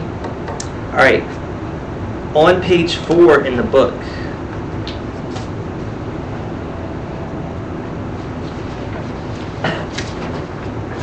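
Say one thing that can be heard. A man speaks briefly and calmly in a room with some echo.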